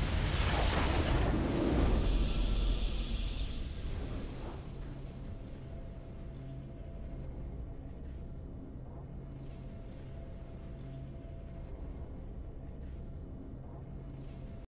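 A triumphant musical fanfare bursts out loudly and then fades into soft, low music.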